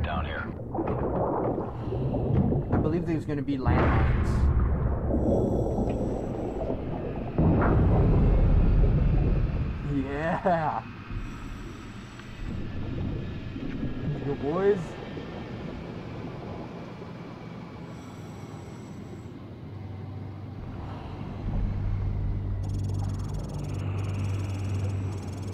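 Deep underwater rumbling and bubbling swell and fade.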